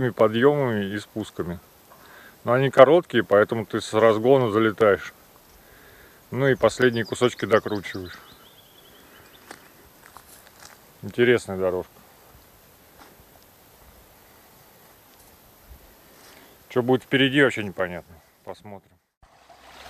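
A young man talks calmly and close by, in bursts with pauses.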